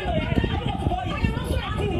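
A woman argues loudly and excitedly.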